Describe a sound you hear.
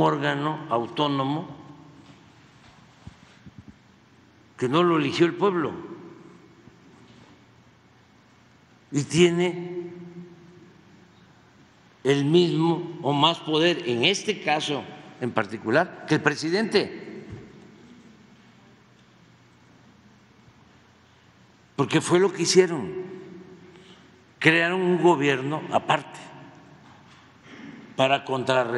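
An elderly man speaks slowly into a microphone, with long pauses, in a large echoing hall.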